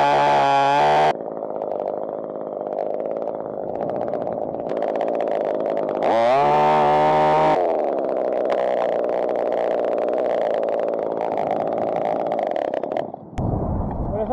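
A chainsaw engine idles close by.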